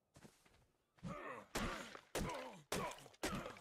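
Blows thud against a tree trunk.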